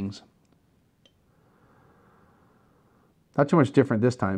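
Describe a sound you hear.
A man sniffs wine from a glass.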